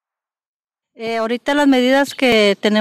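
A middle-aged woman speaks with animation close to a microphone.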